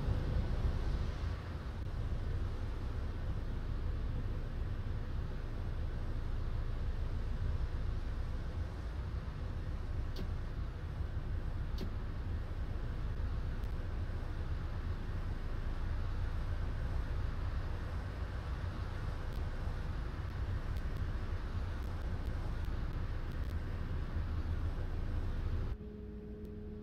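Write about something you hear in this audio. A bus engine idles with a deep, steady rumble.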